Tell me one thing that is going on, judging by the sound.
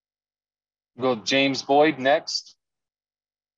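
A man speaks briefly and calmly over an online call.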